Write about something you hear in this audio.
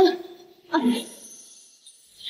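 A young woman gasps and cries out in pain close by.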